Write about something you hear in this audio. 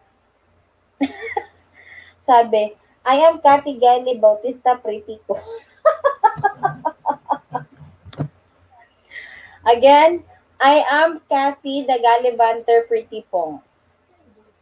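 A woman sings loudly and with feeling into a close microphone.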